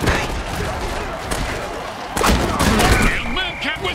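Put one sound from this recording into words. Armoured players crash together in a heavy tackle.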